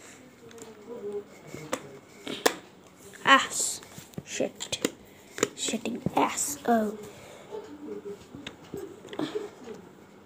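Fingers tap and click on a plastic box.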